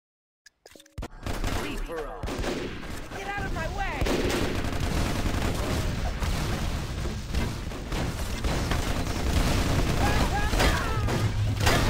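Gunfire crackles in quick bursts.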